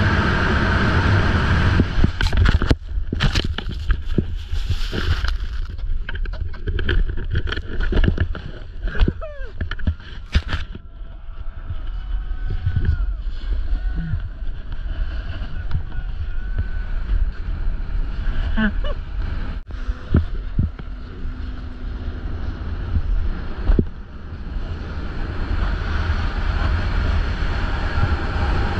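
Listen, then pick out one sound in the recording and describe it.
Wind rumbles loudly past the microphone.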